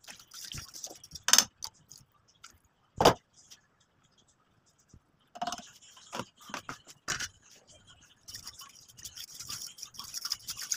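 A spoon stirs and scrapes against a metal pan.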